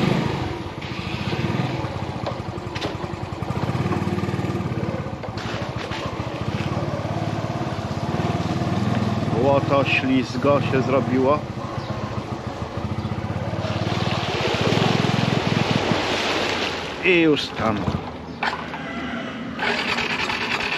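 A scooter engine hums and putters steadily.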